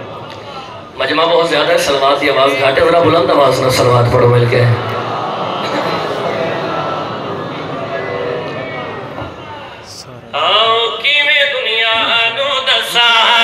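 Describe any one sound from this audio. A man recites with passion into a microphone, heard loudly through loudspeakers in a large echoing space.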